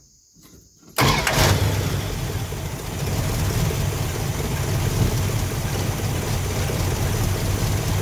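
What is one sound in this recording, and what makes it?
A car engine starts with a burst and then idles with a loud, rough rumble.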